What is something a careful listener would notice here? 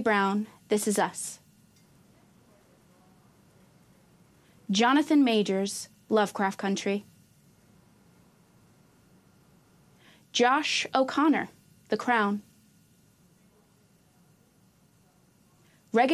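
A woman reads out names clearly through a microphone, with pauses between them.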